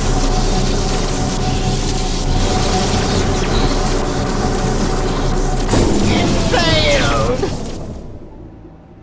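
Electricity crackles and buzzes loudly, then dies away.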